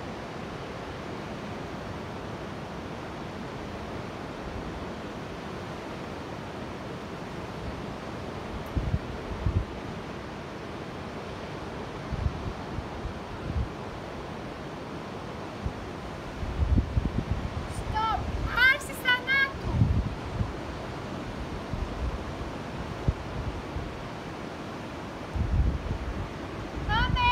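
Sea waves wash and break nearby.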